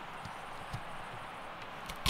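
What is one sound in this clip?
A knife chops through a carrot on a wooden board.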